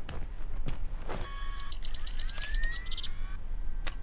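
A metal door creaks open.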